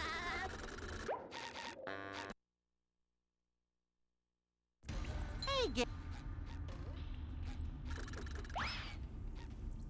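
Cheerful video game music plays.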